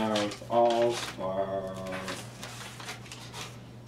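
Paper rustles as a page is turned.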